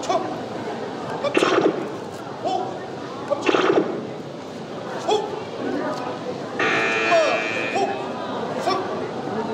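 A male referee shouts short commands.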